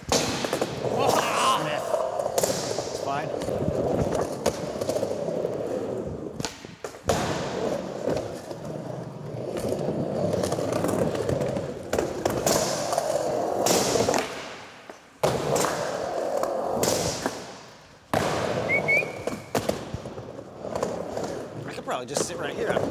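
Skateboard wheels roll and rumble across a hard floor.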